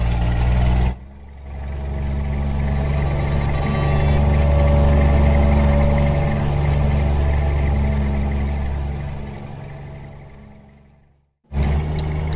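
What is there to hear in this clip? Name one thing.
A truck engine drones steadily, fading into the distance.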